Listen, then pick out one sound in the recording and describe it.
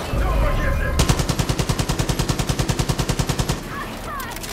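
A rifle fires in a rapid burst of shots.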